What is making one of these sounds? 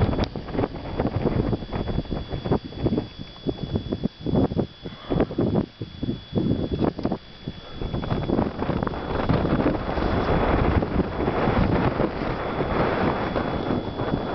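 Wind gusts and buffets against the microphone outdoors.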